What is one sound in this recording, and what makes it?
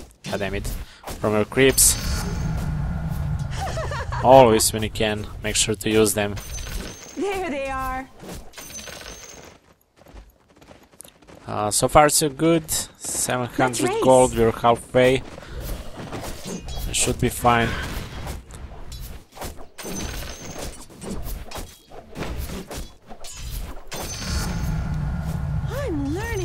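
Weapons clash and thud in a video game fight.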